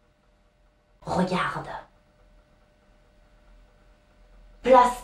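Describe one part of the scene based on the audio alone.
A young woman speaks expressively close by, in short bursts.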